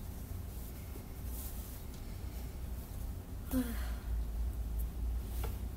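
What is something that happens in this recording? A young woman speaks softly close to the microphone.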